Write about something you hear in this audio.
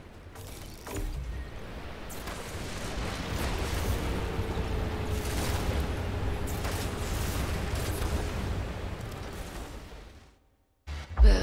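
A low rumbling drone fills the air.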